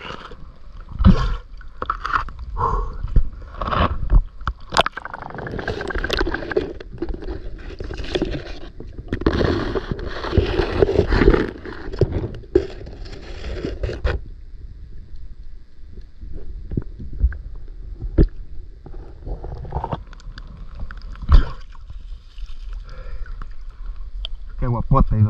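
Shallow water sloshes and gurgles close by.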